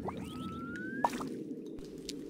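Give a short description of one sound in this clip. A soft click sounds as a button is pressed.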